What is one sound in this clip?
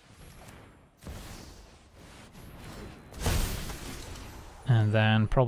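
A magical whoosh and shimmer rings out as a spell takes effect.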